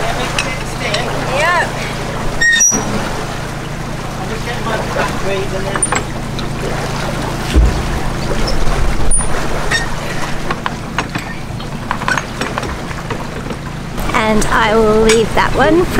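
A metal ratchet clicks steadily as a lock paddle is wound up.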